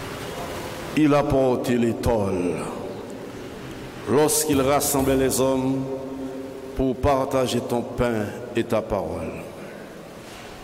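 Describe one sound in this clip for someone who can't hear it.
A man sings slowly through a loudspeaker in a large echoing hall.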